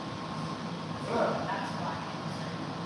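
A woman speaks briefly and softly from across a large echoing room.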